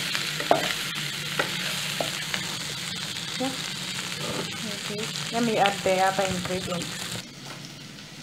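Meat sizzles and fries in a pot.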